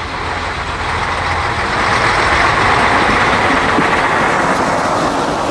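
Train wheels clatter on the rails as a railcar passes close by.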